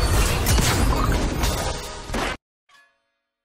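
Magic blasts crackle and boom loudly.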